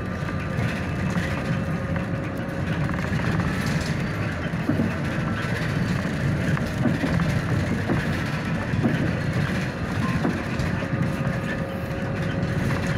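A vehicle's engine rumbles steadily from inside as it drives along a road.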